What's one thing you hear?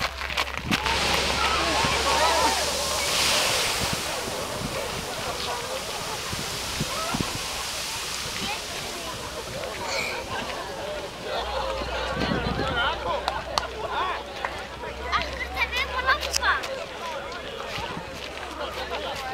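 A crowd of onlookers exclaims and chatters outdoors.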